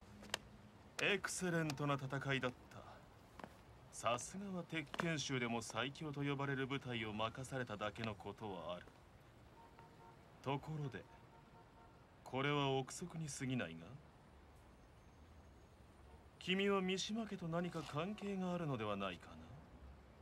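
A young man speaks smoothly and with a mocking tone, close by.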